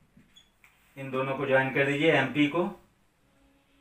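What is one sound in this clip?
A man speaks clearly and with animation close by.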